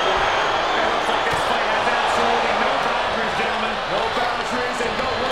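A crowd roars steadily in a large arena.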